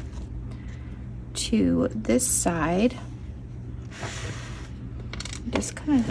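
Stiff paper rustles as a folded card is opened.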